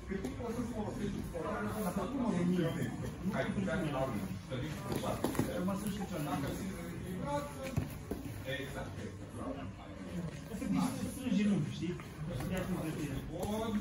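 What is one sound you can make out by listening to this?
Bodies shuffle and thump softly on a padded mat.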